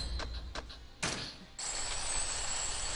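A quick chiming sound effect rings as a skill is bought.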